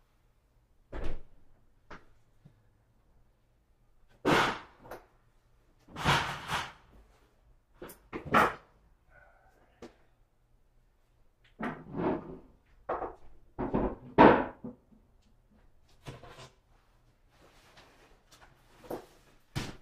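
Paper rustles and thumps nearby.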